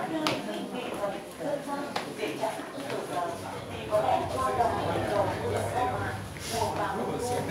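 Several adults chat nearby in overlapping voices.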